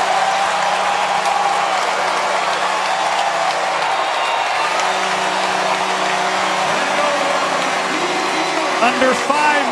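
A large crowd cheers loudly in a big arena.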